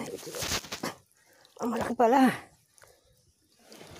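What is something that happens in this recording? A caught fish thrashes and splashes in shallow water.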